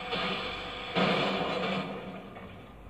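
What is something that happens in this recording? A loud blast bursts and rumbles.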